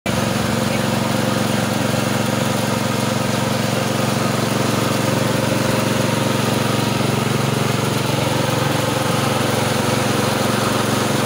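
A small engine-driven rice milling machine runs with a loud, steady drone close by.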